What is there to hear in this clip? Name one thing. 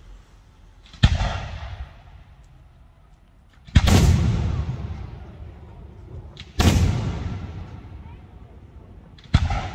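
Fireworks crackle and sizzle after bursting.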